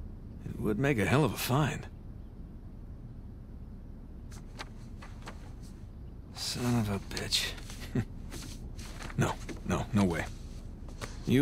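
Paper rustles and shuffles as sheets are handled.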